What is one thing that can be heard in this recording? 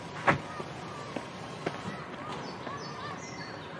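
Footsteps climb concrete steps.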